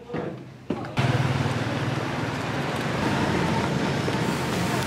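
Traffic and wind rush outdoors.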